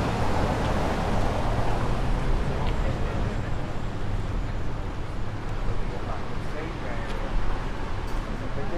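Footsteps tap on stone paving outdoors.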